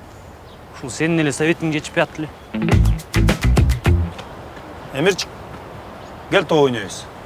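A young man speaks calmly to a microphone outdoors.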